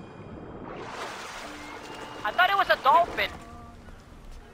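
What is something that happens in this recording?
Water splashes as a swimmer climbs aboard.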